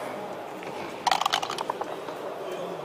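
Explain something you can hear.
Dice rattle in a cup and clatter onto a board.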